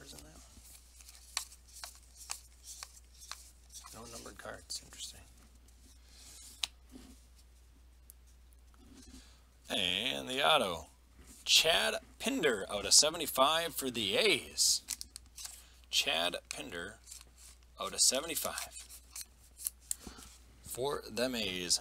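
Trading cards rustle and click as hands shuffle them.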